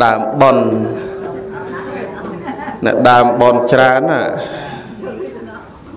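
A man chants slowly into a microphone, with echo.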